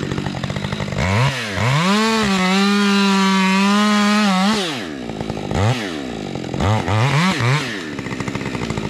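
A chainsaw revs up loudly, cutting into wood.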